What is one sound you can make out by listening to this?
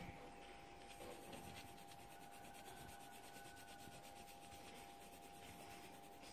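A pencil scratches rapidly across paper, close up.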